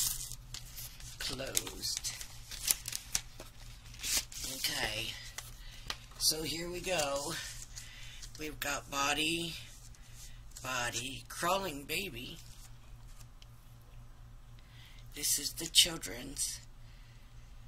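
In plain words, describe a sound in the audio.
Plastic sheets rustle and crinkle as they are handled.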